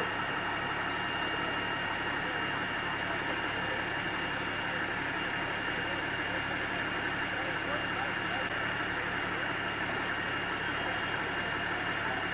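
A fire engine's motor hums steadily nearby.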